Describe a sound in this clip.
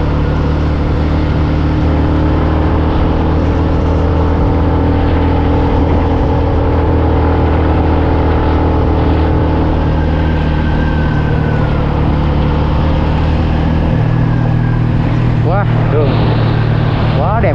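A vehicle engine hums steadily while driving.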